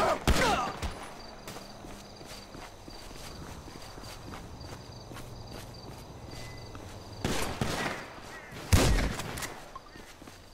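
A shotgun fires loud blasts that echo.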